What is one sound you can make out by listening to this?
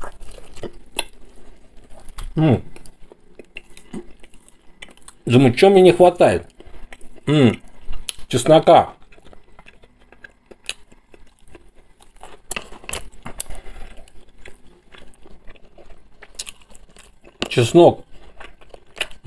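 A man chews food with wet, smacking sounds.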